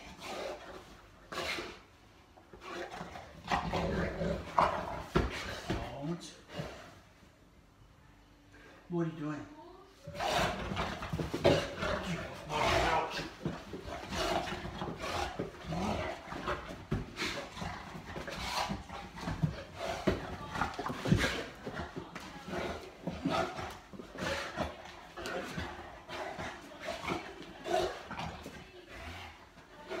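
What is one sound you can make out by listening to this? A man talks playfully to a dog.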